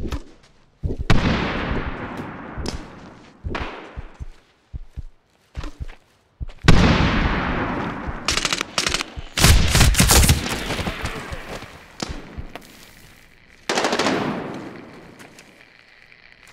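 Explosions boom and rumble away.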